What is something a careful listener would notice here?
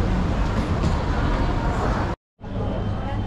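A crowd murmurs in a busy indoor space.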